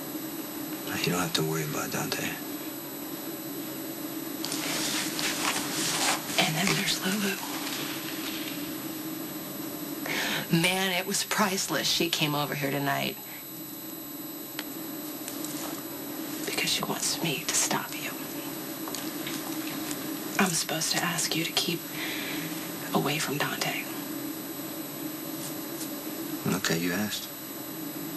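A man speaks in a low, tense voice, close by.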